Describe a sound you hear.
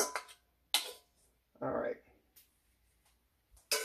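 A spoon scrapes batter from a metal bowl.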